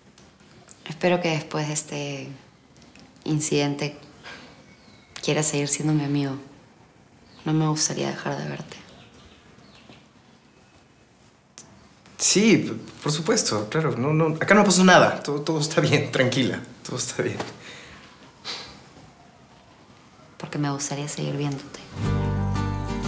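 A young woman speaks calmly up close.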